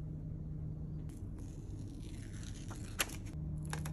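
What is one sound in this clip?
Backing paper crinkles as it is peeled away.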